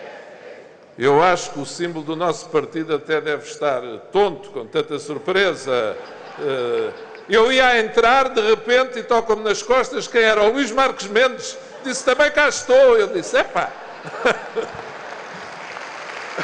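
A middle-aged man speaks with animation through a microphone and loudspeakers.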